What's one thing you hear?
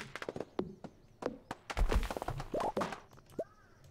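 A tree falls with a crash.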